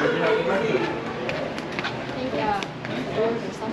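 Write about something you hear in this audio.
Sandals slap on a porch floor as a man walks.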